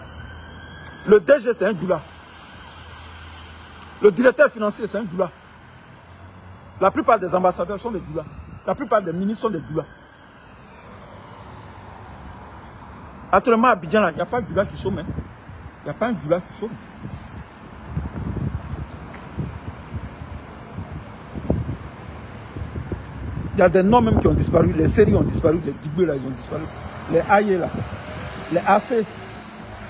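A middle-aged man speaks close to a phone microphone, with animation, in short bursts and pauses.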